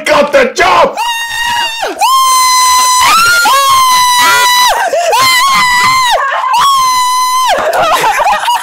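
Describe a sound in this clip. A young woman shrieks and sings out with joy.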